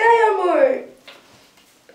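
A young woman shrieks loudly, close by.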